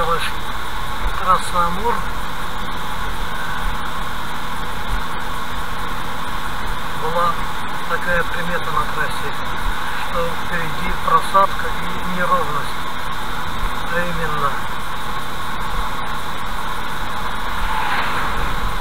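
Tyres hum steadily on a wet road from inside a moving car.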